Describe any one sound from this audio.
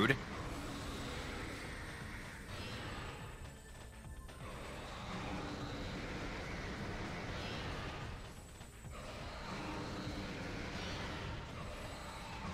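Video game laser shots fire in rapid bursts.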